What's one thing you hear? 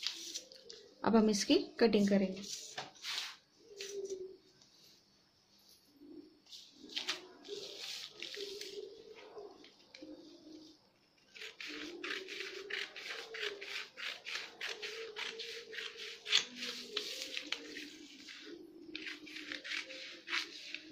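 Newspaper rustles as it is handled.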